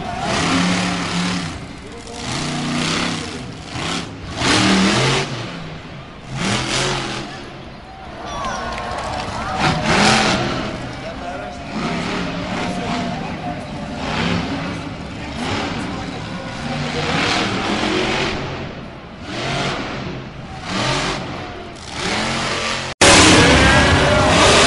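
A monster truck engine roars and revs loudly in a large arena.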